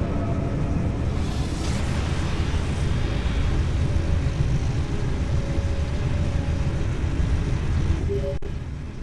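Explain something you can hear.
A powerful energy beam roars and crackles with electricity.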